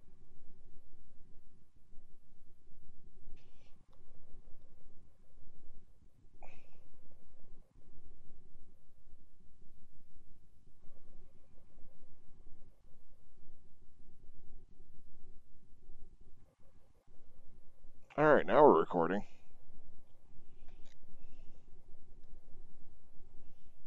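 A motorcycle engine idles with a low, steady rumble.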